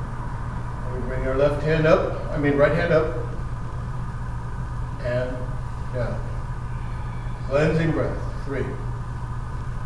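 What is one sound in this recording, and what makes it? An older woman speaks nearby, calling out instructions in short phrases.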